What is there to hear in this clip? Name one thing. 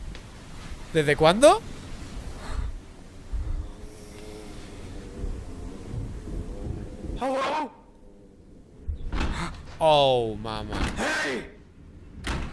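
A young man exclaims loudly in surprise.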